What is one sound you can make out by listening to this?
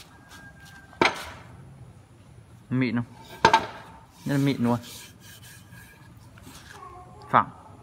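A wooden board knocks against metal several times.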